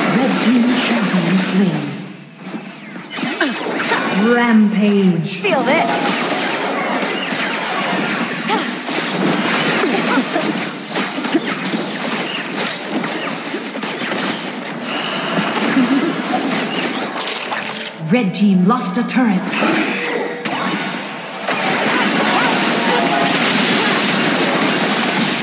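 Game spells whoosh and blast as fighters clash.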